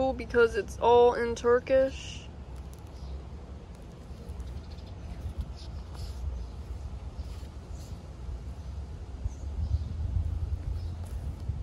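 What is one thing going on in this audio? Paper pages rustle and flip as a thin booklet is handled.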